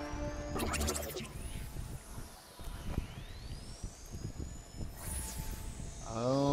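Weapon strikes whoosh and ring out with magical shimmering effects.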